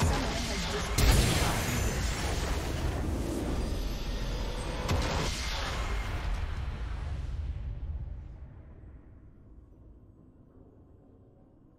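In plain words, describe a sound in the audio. A triumphant fanfare swells and then fades away.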